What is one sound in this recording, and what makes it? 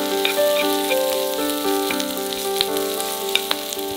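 A wooden spatula scrapes and knocks against a pan.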